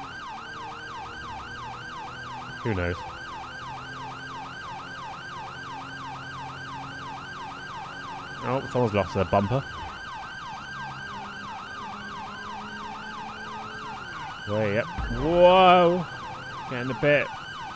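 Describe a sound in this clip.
A police siren wails steadily with a fast rising and falling tone.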